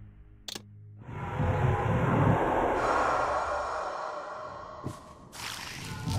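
A shimmering magical whoosh swells and slowly fades.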